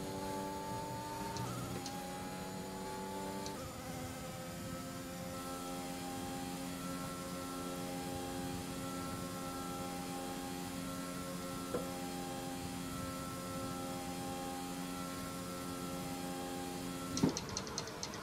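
A racing car engine drones at high revs, shifting up through the gears.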